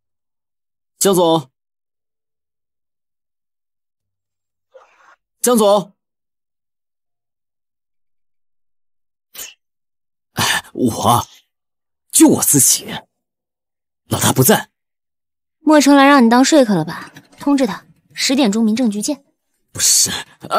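A young man speaks firmly, close by.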